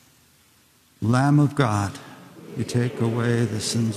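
A man chants in a clear, steady voice that echoes through a large hall.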